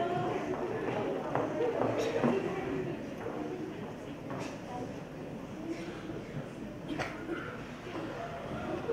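A man on stage speaks loudly through a microphone in a large echoing hall.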